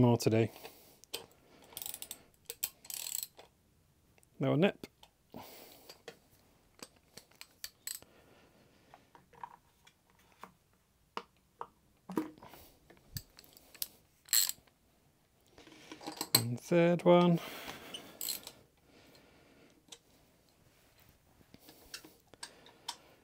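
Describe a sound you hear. Metal tools click and clink against an engine part.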